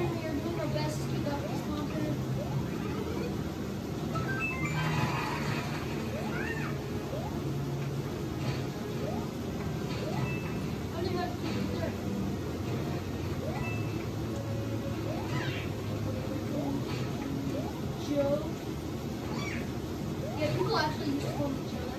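Video game sound effects chirp and jingle from a television.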